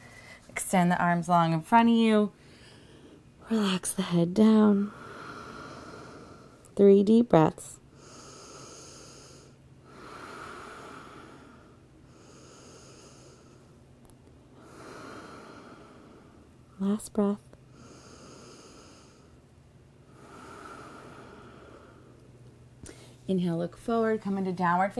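A young woman speaks calmly and softly into a close microphone.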